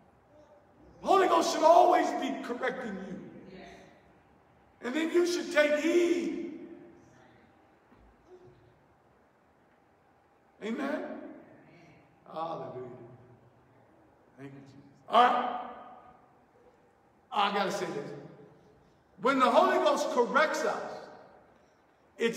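A man preaches with animation into a microphone, heard over loudspeakers in an echoing hall, in loud bursts with pauses.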